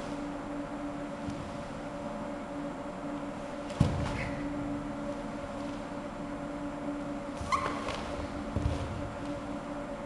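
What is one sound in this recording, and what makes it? Bare feet thump and slide on a wooden floor in an echoing hall.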